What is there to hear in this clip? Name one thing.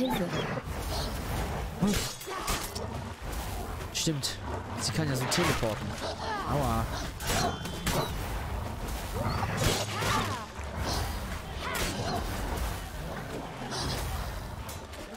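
A sword swishes and strikes.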